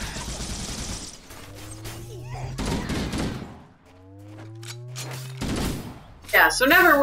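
Game weapons fire in quick bursts with electronic blasts.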